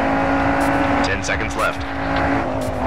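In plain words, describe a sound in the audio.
Tyres screech on tarmac through a corner.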